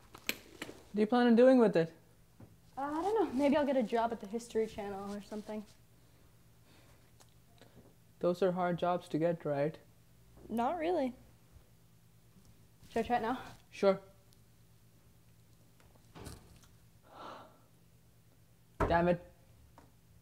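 A young woman speaks quietly in short bursts.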